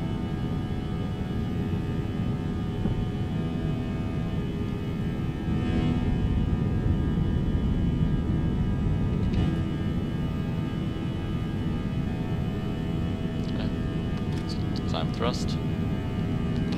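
Jet engines roar steadily with a low rushing hum.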